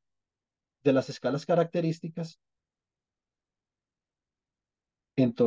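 A man speaks calmly through an online call.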